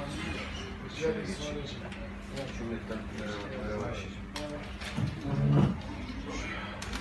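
A man speaks loudly to a group, nearby.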